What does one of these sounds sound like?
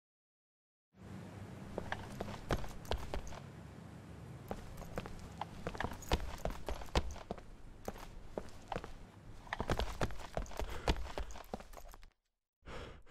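Footsteps tap on a hard floor indoors.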